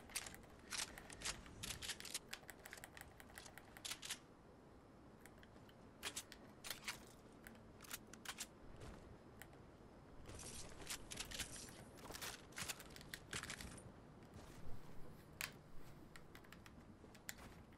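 Wooden building pieces clack into place in quick succession.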